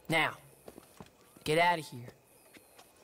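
A man speaks in short, calm phrases nearby.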